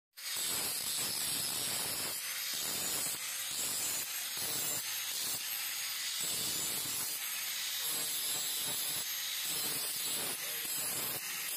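A grinder whines loudly and steadily.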